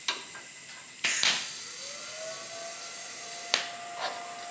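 A welding torch crackles and hisses as it welds metal.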